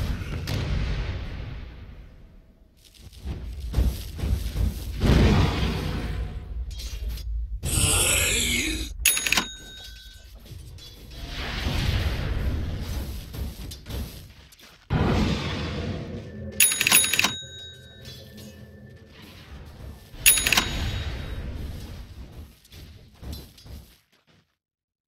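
Fiery spell blasts and magical impacts burst and crackle.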